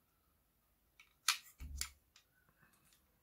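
Plastic parts click and knock as they are handled up close.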